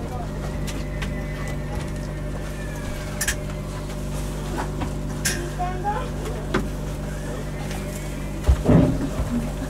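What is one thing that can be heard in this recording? A train rolls slowly and comes to a stop.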